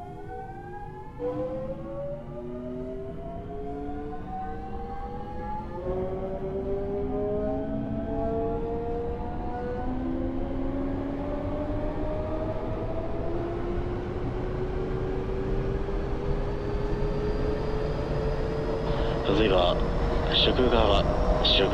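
An electric train motor whines, rising in pitch as the train speeds up.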